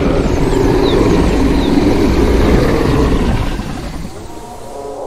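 A large creature growls and rumbles loudly.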